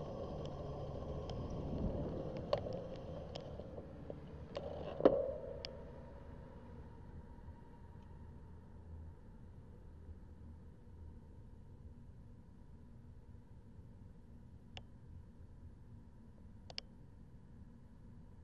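Traffic rumbles steadily in the distance.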